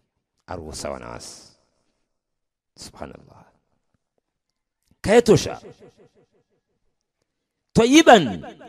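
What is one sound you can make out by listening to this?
An older man speaks calmly and close by, in short phrases with pauses.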